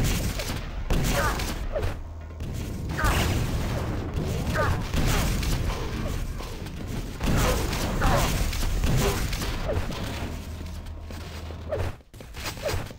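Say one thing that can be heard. A lightning gun crackles and hums in rapid bursts.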